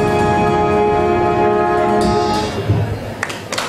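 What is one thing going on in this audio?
A brass band plays and holds a final chord.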